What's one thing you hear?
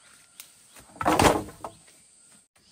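Bamboo poles clatter as they are dropped onto a pile nearby.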